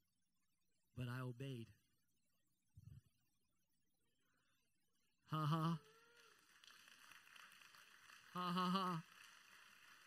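A man speaks loudly in short, drawn-out phrases through a microphone.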